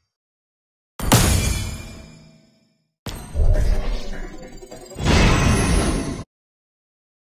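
Game whooshes and bursts sound as results pop up.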